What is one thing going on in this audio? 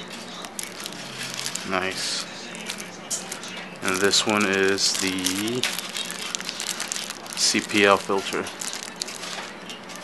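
Plastic wrapping crinkles and rustles as hands handle it.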